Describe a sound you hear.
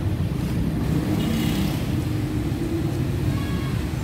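A motorbike engine idles nearby.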